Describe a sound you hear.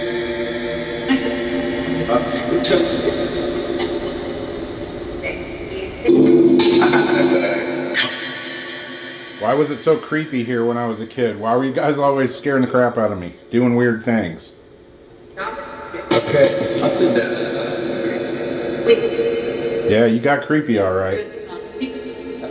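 Music plays through a small amplifier speaker.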